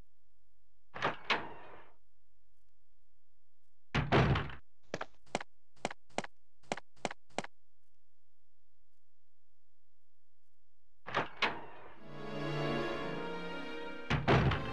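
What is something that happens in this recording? A heavy wooden door slowly creaks open.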